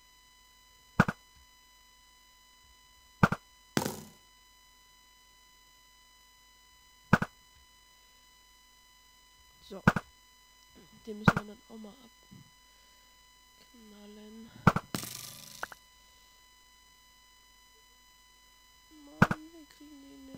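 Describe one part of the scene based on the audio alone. A video game bow fires arrows with sharp twangs.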